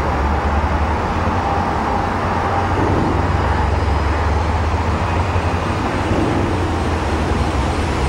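A passenger train rumbles along the tracks and fades into the distance.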